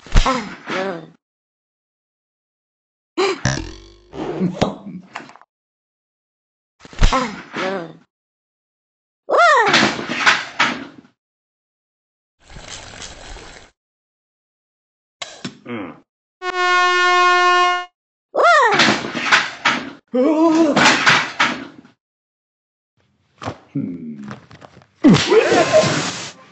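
Cartoon characters speak in high, squeaky comic voices.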